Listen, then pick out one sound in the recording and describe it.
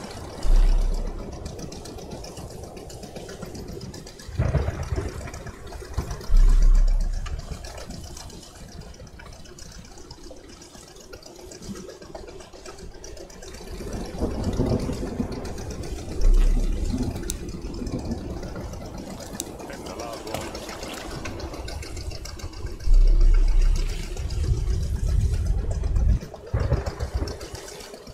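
Water splashes and rushes past a boat's hull.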